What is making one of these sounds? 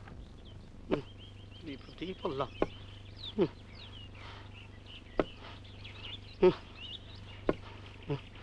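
Footsteps thud slowly on a dirt path.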